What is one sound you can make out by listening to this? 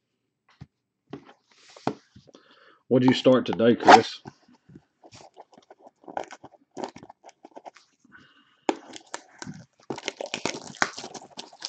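Plastic wrap crinkles and rustles as hands tear open a box.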